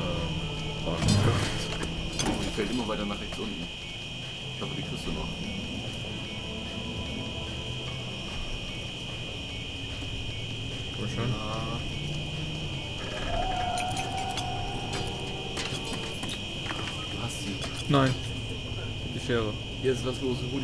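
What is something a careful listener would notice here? Metal tools clatter on a tray.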